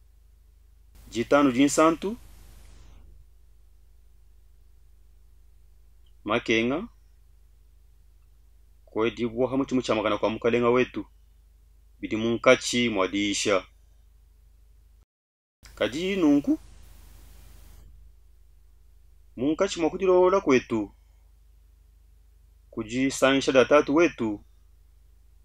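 A middle-aged man speaks with feeling into a close microphone, in short phrases with pauses between them.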